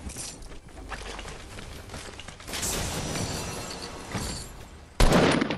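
A treasure chest creaks open with a shimmering chime.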